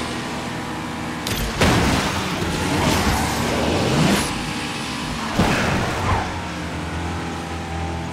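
Tyres screech in a drift.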